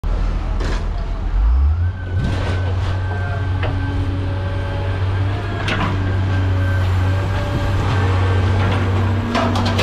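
A heavy machine's engine rumbles steadily nearby.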